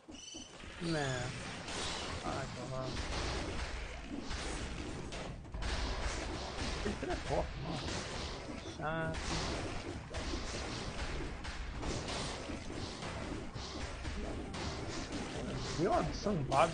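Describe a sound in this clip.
Sword slashes and hits clash rapidly in a video game.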